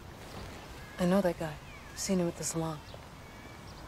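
A woman speaks quietly and tensely nearby.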